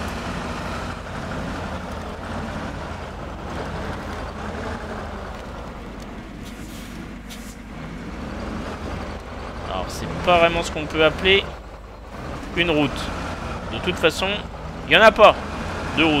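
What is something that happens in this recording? A truck engine rumbles and strains as the truck crawls over rough ground.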